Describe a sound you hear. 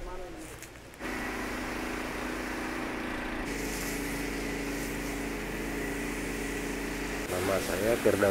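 A pump engine hums steadily.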